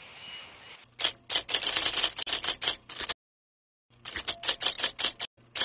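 A cockatoo screeches loudly and harshly in repeated bursts.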